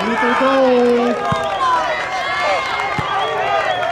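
Young players shout and cheer in celebration outdoors.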